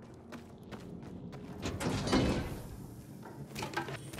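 A metal cabinet door swings open.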